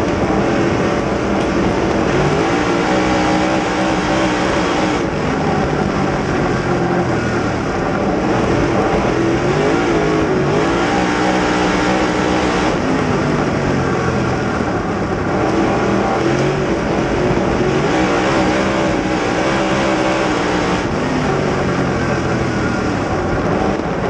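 A race car engine roars loudly up close, revving up and down through the turns.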